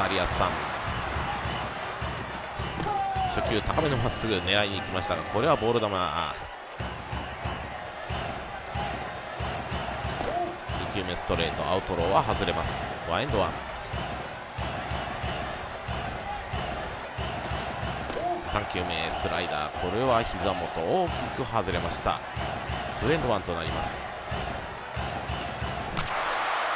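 A large crowd cheers and chants steadily in a stadium.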